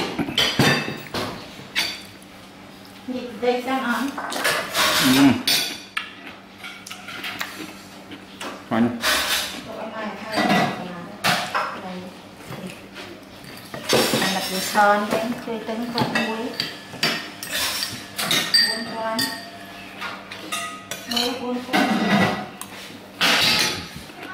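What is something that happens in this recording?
A metal spoon clinks against a plate.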